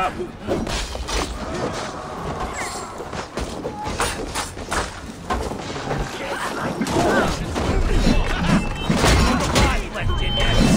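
Blades clash and strike repeatedly in a fight.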